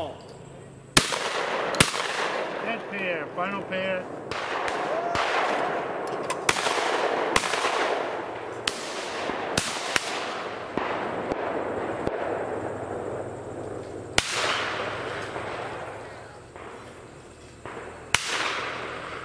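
Shotguns fire loud, echoing bangs outdoors, one after another.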